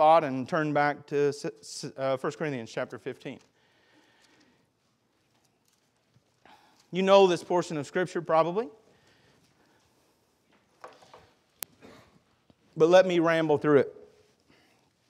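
A man speaks calmly into a microphone in bursts, with pauses between.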